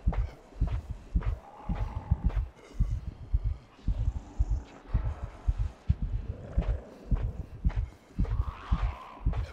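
Many footsteps march in a steady, heavy rhythm.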